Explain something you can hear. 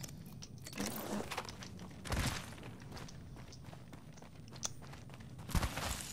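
Footsteps thud quickly on dirt and gravel.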